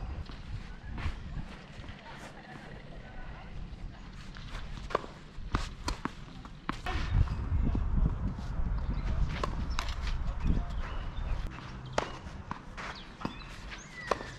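Tennis balls are struck hard with rackets.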